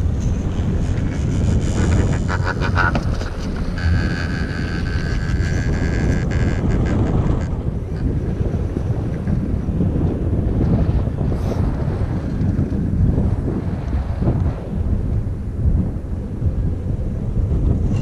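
Wind buffets loudly outdoors.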